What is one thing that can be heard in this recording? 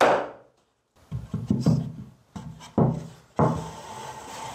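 Wooden boards knock and clatter as they are handled.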